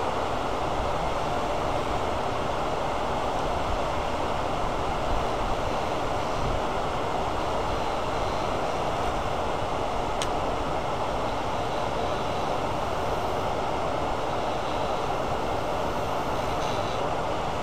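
A tool scrapes against a spinning metal part.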